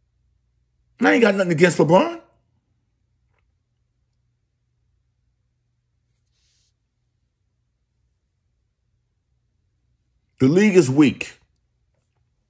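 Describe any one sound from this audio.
An older man speaks in short bursts, close to the microphone.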